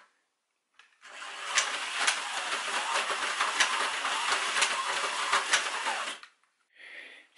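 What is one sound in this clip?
A toy slot car whirs around a plastic track.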